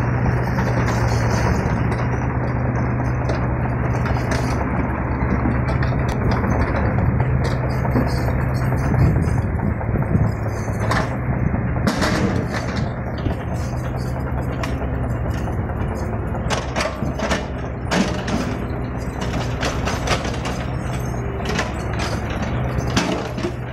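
A small excavator's diesel engine rumbles steadily nearby.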